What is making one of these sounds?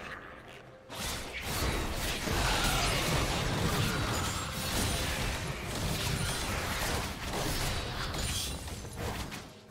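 Magic spells crackle, whoosh and burst in a fast fight.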